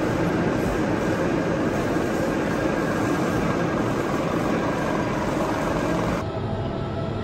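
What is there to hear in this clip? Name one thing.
A lathe's cutting tool shaves steel from a gear blank.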